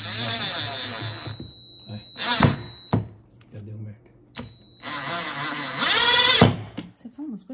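A cordless drill whirs in short bursts as it drives in a screw.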